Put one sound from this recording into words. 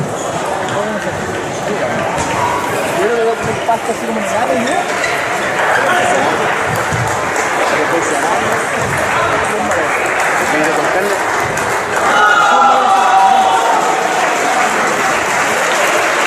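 Many people talk in a murmur in a large echoing hall.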